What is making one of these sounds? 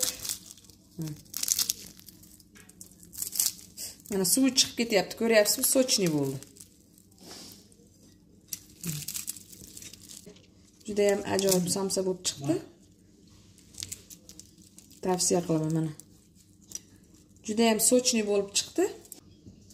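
Flaky pastry crackles and tears close by.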